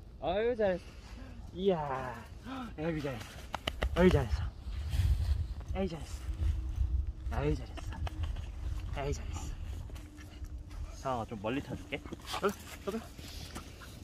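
A woman speaks to a dog in a high, playful voice close by.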